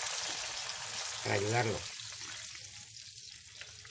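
Liquid splashes into a hot pan.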